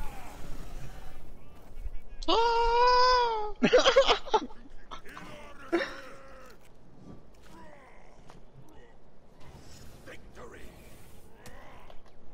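Flames burst with a roar.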